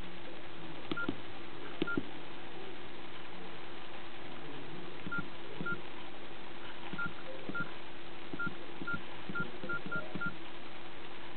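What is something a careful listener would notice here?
Short electronic beeps sound as a phone's keys are pressed.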